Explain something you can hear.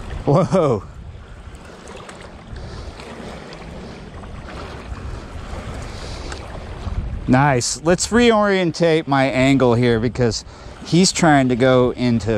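Small waves lap gently against a rocky shore.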